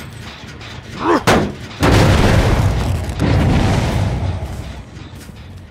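A machine clanks and bursts with a loud rumbling blast.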